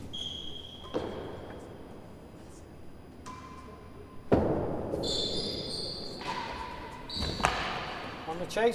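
A ball bounces and thuds off the walls and floor of an echoing hall.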